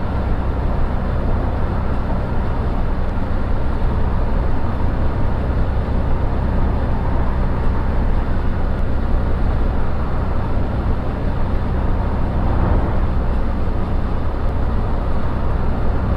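A bus engine hums steadily at cruising speed.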